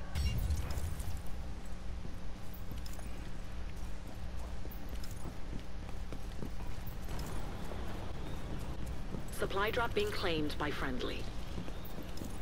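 Footsteps run over grass and gravel.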